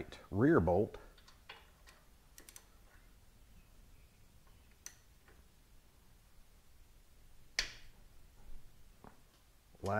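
A ratchet wrench clicks as a bolt is turned.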